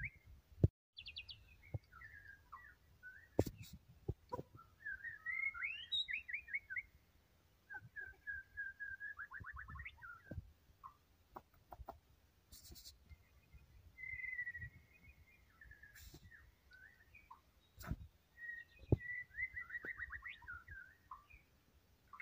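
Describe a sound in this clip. A songbird sings close by in varied, rapid trills and whistles.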